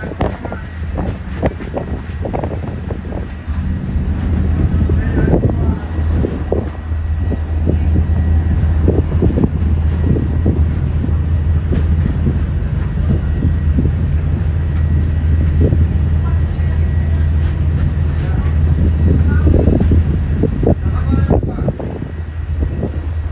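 Water churns and splashes in the boat's wake.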